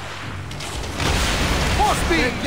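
Wood crashes and splinters as one ship rams another.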